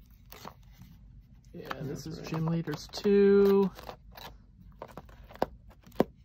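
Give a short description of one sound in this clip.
Cards in a box are flicked through and rustle softly.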